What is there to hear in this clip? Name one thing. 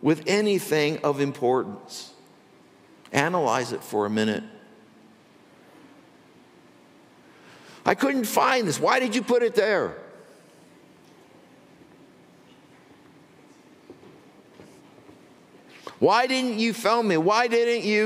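An elderly man speaks calmly through a microphone, with pauses between phrases.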